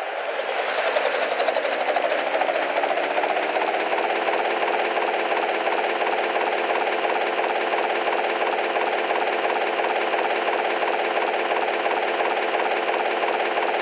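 A helicopter's rotor whirs loudly and steadily as it lifts off and flies.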